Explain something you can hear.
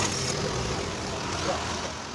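A motorbike engine hums as it approaches.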